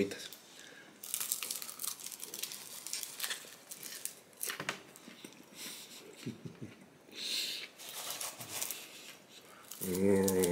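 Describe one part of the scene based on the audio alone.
A man chews crunchy popcorn loudly, close to a microphone.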